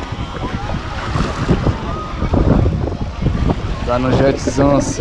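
Small waves wash gently onto the sand.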